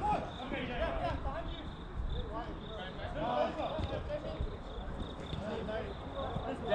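Men shout and call to each other across an open outdoor pitch.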